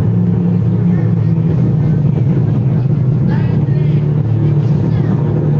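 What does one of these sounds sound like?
Music with a deep, steady beat plays loudly through outdoor loudspeakers.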